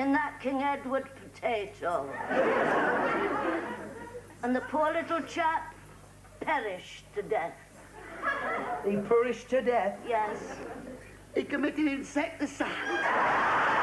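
An elderly woman talks nearby.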